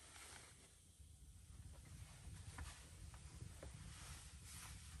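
Bedding and clothes rustle as a man gets up and sits on a bed.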